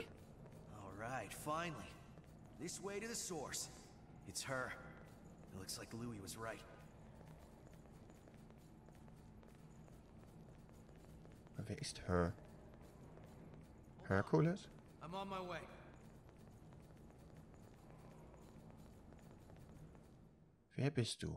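Footsteps run on hard floor.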